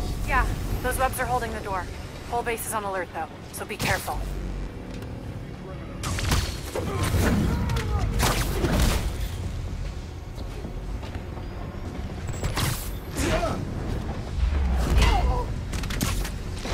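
Quick whooshes sweep past as a figure swings and leaps through the air.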